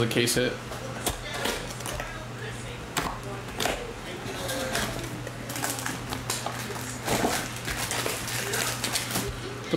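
Cardboard scrapes as a box lid slides open.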